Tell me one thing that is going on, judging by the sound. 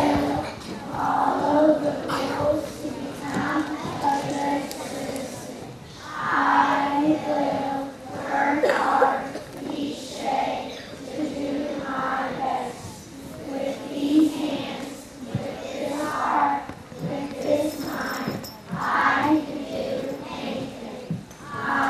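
A young girl speaks steadily into a microphone, heard through a loudspeaker in an echoing hall.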